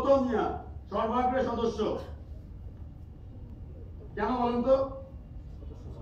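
A man speaks close by in short bursts.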